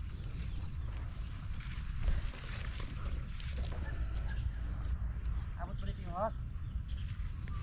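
Leaves rustle as hands pick at a plant.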